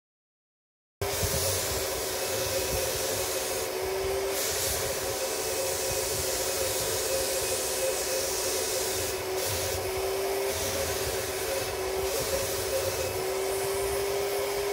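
A paint spray gun hisses steadily.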